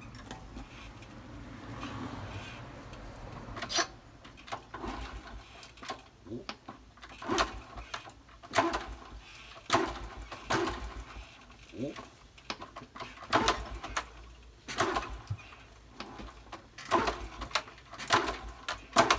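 A kick starter is stomped over and over, cranking a Honda Super Cub's four-stroke engine.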